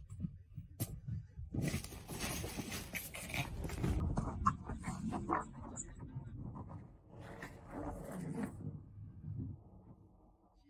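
A dog and a cat scuffle and thump on soft bedding.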